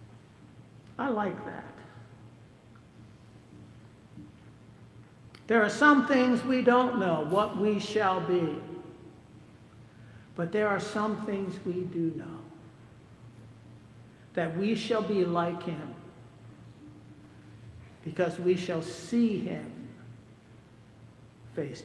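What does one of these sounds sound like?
An elderly man speaks slowly and calmly through a microphone in a large echoing hall, with long pauses.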